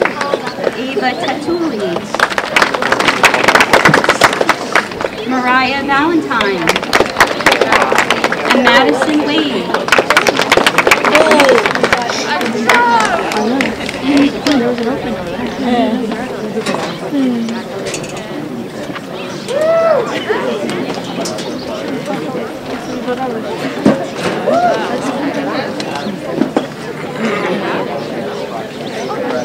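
A young woman speaks into a microphone through loudspeakers, announcing outdoors.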